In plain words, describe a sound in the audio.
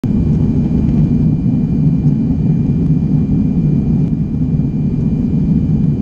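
Jet engines roar steadily in a deep, constant drone inside an airliner cabin.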